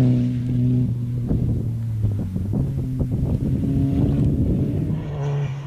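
Gravel and dirt spray and crackle under a car's tyres.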